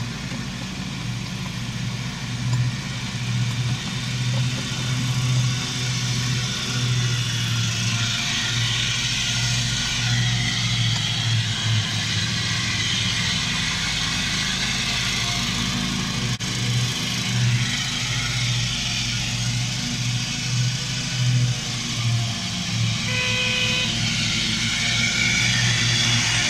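Train wheels rumble and clatter along the rails.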